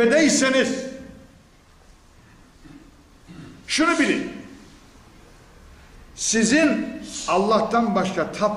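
An elderly man speaks with emphasis into a microphone, in bursts with pauses.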